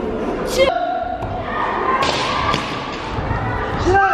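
Children shout sharply in unison.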